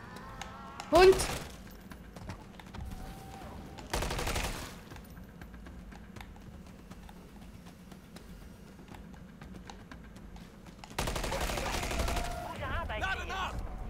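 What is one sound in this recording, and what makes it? Gunfire bursts out in short, loud volleys.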